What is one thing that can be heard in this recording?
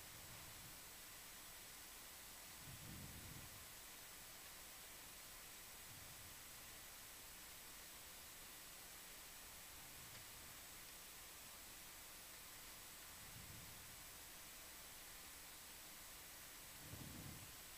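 Air bubbles rush and gurgle underwater in low, muffled bursts.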